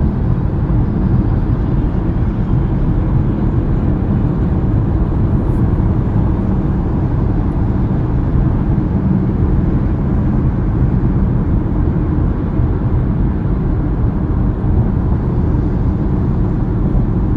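A car engine hums steadily while driving at highway speed.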